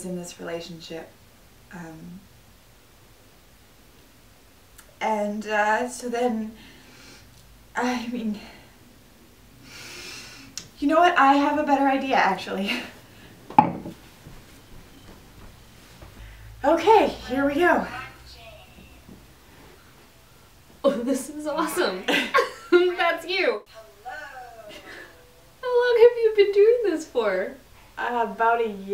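A young woman talks nearby.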